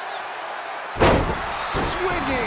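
A body slams down hard onto a wrestling mat.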